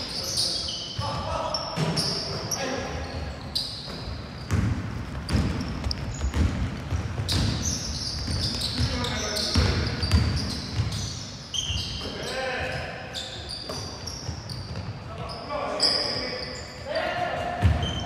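Young men shout to each other across the court.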